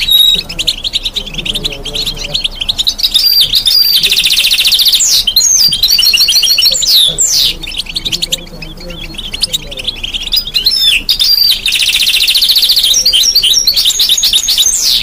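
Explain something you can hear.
A bird sings loudly and close by with fast trills and chirps.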